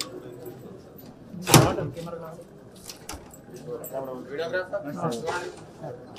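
Several men talk nearby in a murmur.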